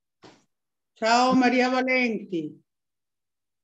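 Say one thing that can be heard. An elderly woman calls out loudly over an online call.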